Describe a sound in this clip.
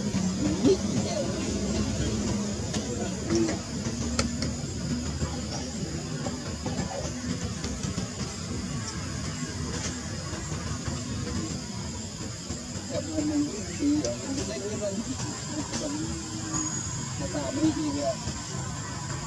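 Young monkeys squeak and chirp softly close by.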